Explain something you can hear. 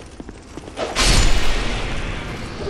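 A heavy blow lands with a loud thud and clang.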